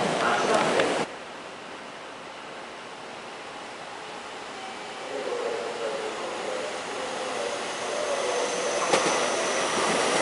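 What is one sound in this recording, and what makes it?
A train approaches slowly with a growing rumble.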